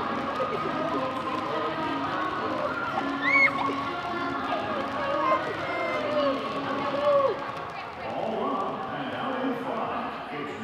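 Basketballs bounce on a hard floor in a large echoing hall.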